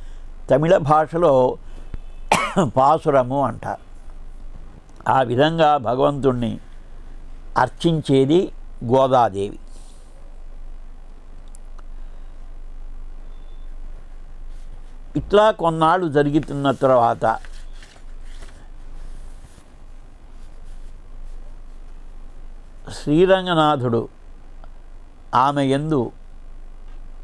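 An elderly man speaks calmly and slowly into a close microphone, with pauses between phrases.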